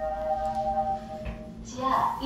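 A lift button beeps with a steady tone as it is pressed.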